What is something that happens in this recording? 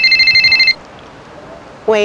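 An elderly woman speaks into a phone close by.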